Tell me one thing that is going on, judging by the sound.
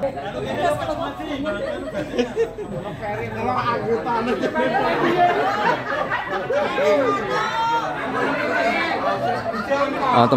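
Nearby men and women talk over one another, getting louder.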